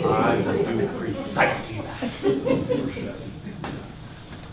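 An elderly man speaks with animation in an echoing hall.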